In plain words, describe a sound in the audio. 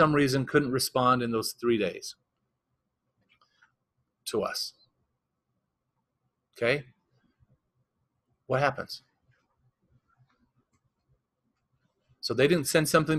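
A man talks calmly to a room, pausing often between phrases.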